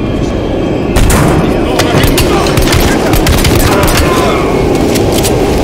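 A pistol fires several loud, quick shots that echo in an enclosed space.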